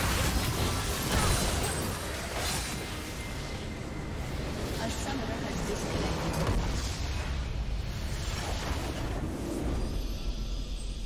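Loud game explosions and blasts boom and crackle.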